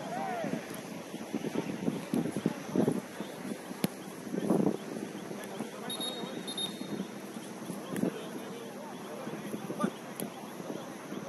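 Young men shout and call out across an open outdoor pitch.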